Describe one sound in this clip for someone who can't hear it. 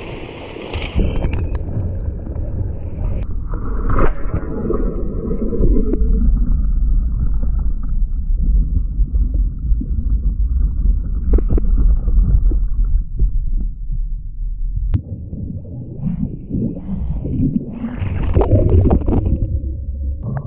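Water splashes hard against a kayak's bow.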